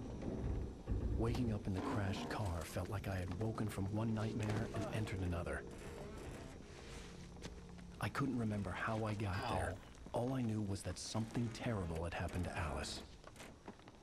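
A man speaks into a microphone close by.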